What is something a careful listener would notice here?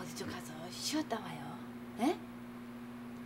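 A woman speaks in a worried tone close by.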